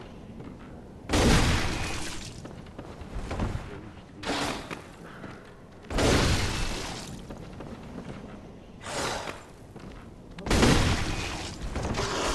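A large beast roars.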